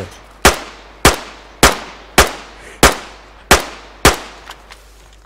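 A gun fires loud shots in quick succession, each one ringing out with a short echo.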